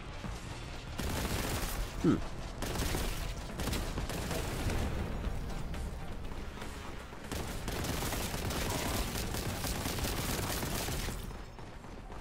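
A heavy gun fires rapid bursts with loud cracks and booms.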